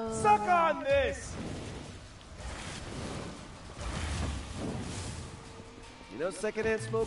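Punches and fiery blasts thud and crackle in a game fight.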